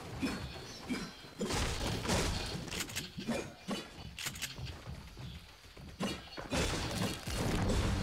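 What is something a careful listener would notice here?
A pickaxe swings with a whoosh.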